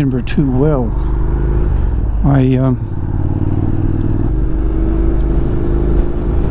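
A motorcycle engine hums steadily while cruising.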